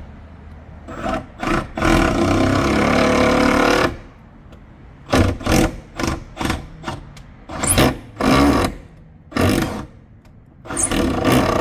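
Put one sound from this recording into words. A cordless drill whirs in short bursts, driving a screw.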